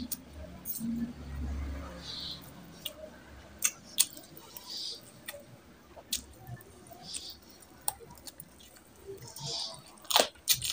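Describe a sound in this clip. A man chews food loudly and wetly, close to the microphone.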